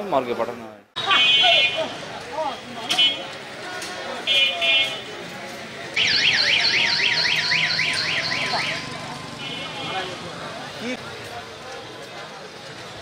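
Motor rickshaws and motorbikes rumble past.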